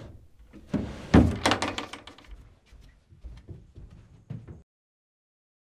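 Footsteps cross a floor.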